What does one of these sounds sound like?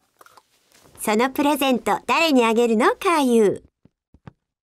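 A young woman speaks warmly and calmly.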